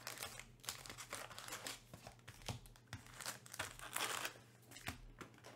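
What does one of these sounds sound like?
Card packs tap and slide against a cardboard box.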